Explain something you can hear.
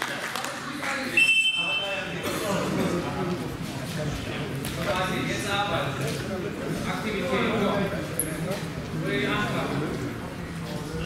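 A man calls out loudly in an echoing hall.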